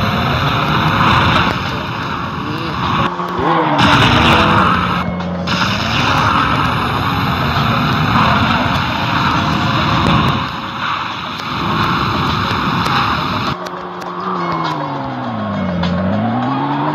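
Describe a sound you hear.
A car engine hums and revs up and down steadily.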